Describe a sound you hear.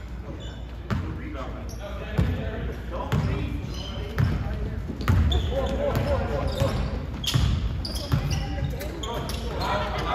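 Spectators talk and cheer in the background.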